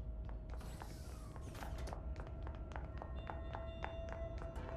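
Footsteps run quickly and evenly.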